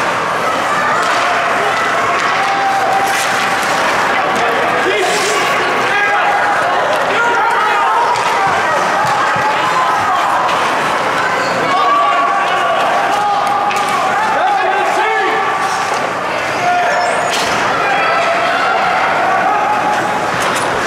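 Ice skates scrape and hiss across the ice.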